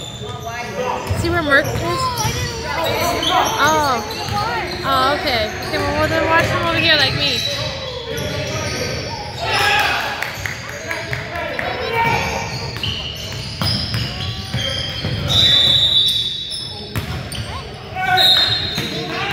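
Men shout to each other across an echoing gym.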